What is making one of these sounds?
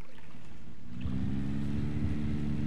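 A small outboard boat motor starts and hums steadily.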